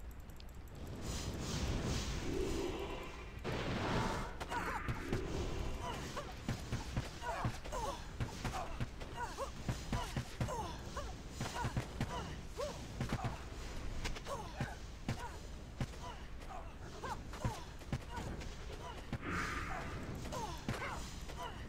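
Spells burst with whooshing bursts.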